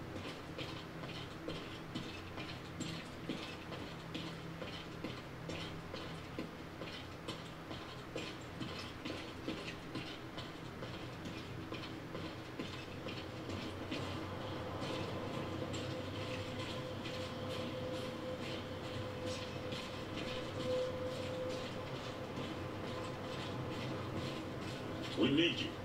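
Footsteps tread steadily on a hard floor.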